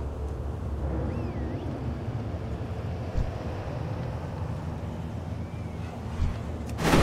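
Game ambience hums low and steady.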